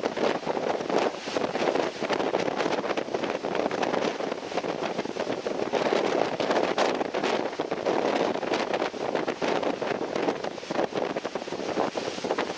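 Wind buffets and rushes past steadily, outdoors on open water.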